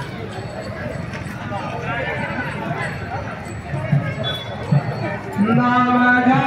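A crowd of men and women chatters in the distance outdoors.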